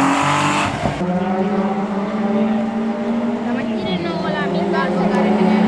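A car engine drones as the car approaches.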